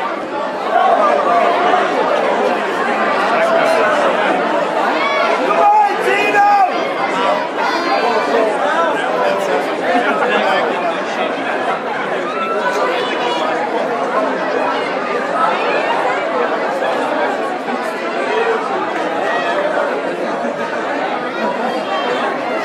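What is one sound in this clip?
A crowd murmurs and chatters loudly in an echoing hall.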